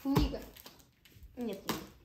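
Packing tape rips as it is cut from a box.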